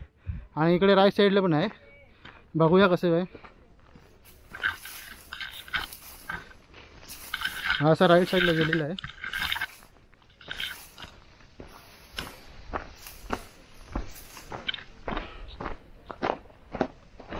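Dry grass brushes and rustles against legs.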